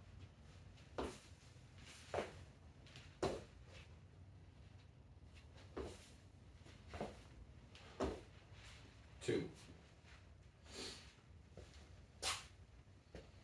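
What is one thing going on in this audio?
Feet land with dull thumps on a hard floor.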